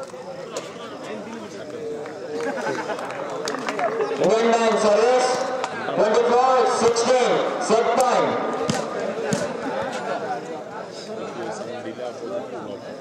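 A crowd of spectators cheers and chants loudly outdoors.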